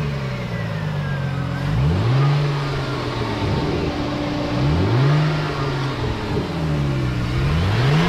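A V6 car engine idles.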